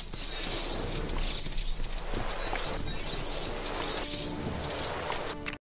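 Bright video game effects chime and clatter rapidly.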